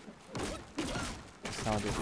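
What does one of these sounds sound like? A heavy blow lands with a crunching impact.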